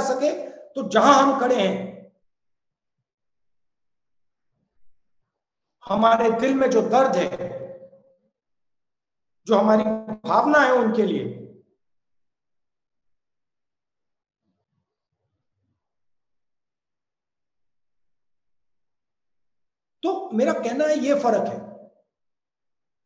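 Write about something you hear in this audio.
A middle-aged man speaks calmly and close up, in short bursts with pauses.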